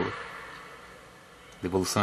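A tennis ball bounces on a court.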